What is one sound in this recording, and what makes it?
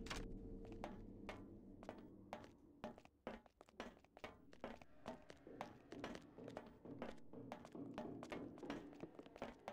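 Footsteps clang on a metal grating floor.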